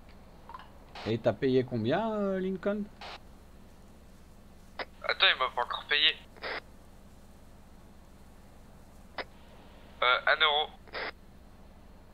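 A man speaks casually into a close microphone, in short bursts.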